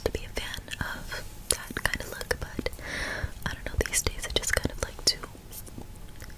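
A young woman whispers very close to a microphone.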